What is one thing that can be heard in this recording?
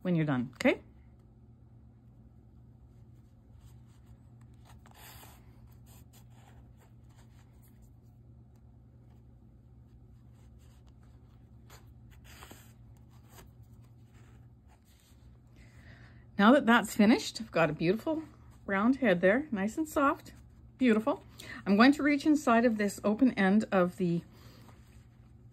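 Yarn softly rustles as hands pull it through knitted stitches.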